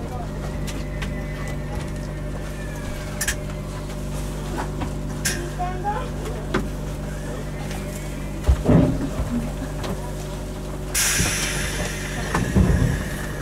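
A train's engine hums steadily.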